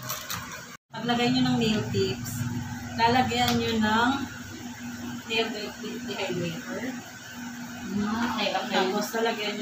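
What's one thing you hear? A woman talks nearby with animation.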